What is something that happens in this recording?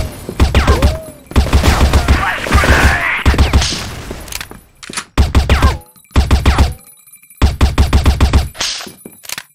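A rifle fires rapid bursts of shots that echo off walls.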